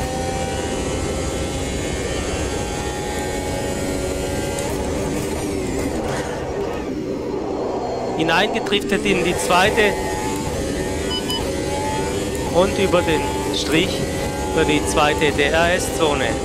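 A racing car engine screams at high revs, its pitch climbing and dropping sharply with each gear change.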